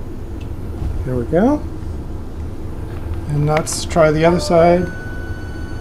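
Metal parts squeak as a machine table slides along its rails.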